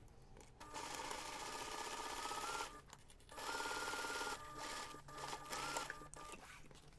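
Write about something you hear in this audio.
A sewing machine whirs rapidly in short bursts.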